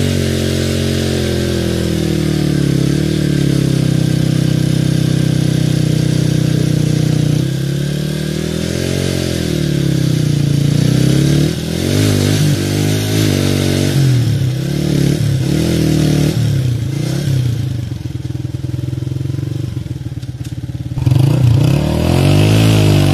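A motorcycle engine idles nearby and revs up and down.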